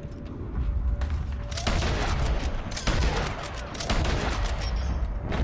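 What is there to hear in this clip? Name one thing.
Rifle shots ring out, loud and sharp.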